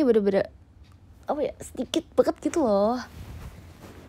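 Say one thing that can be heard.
A young woman speaks cheerfully and playfully close by.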